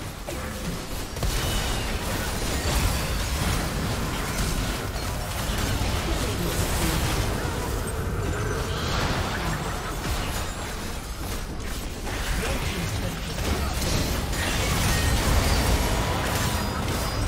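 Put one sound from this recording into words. Game spells crackle, whoosh and boom during a busy battle.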